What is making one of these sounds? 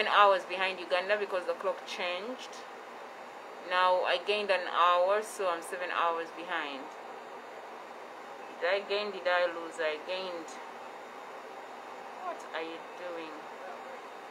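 A young woman speaks close to a phone microphone, calmly, in short bursts.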